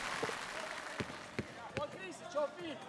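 A basketball bounces a few times on a hard court.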